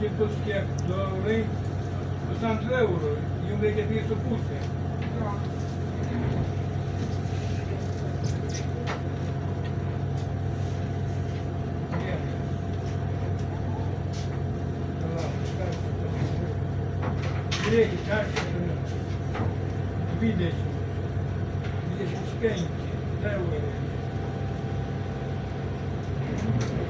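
A bus engine hums low and steady from inside the bus.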